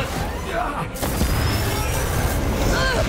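An explosion booms with a deep roar.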